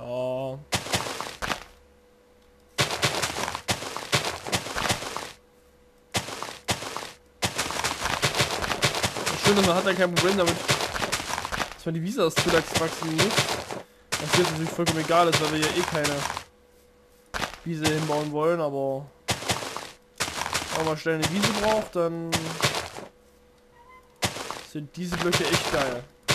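Dirt and grass crunch as blocks are dug out.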